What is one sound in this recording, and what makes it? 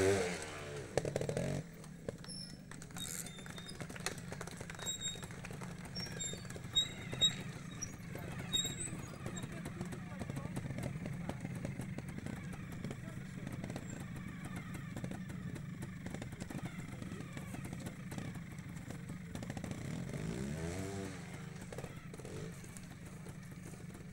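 A motorcycle engine idles and revs in short bursts outdoors.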